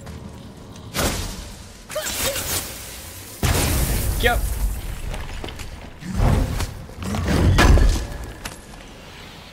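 Heavy metal blows strike and crash with rumbling impacts.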